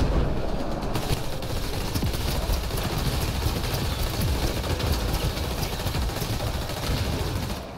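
Energy weapons fire in rapid crackling bursts.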